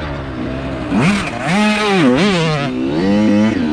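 Another dirt bike engine roars past.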